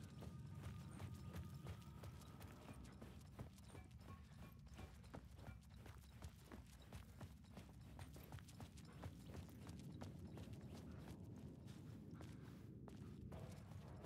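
Footsteps crunch steadily on gravel and grit.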